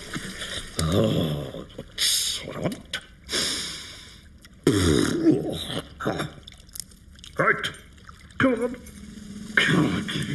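A man mumbles and makes playful noises with his voice close by.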